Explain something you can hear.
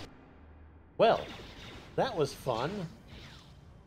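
Blaster shots zap and ring out.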